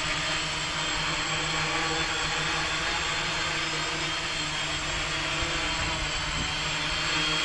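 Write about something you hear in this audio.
The rotors of a small drone whir loudly and steadily close by.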